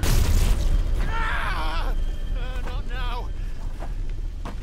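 A young man groans and cries out in pain.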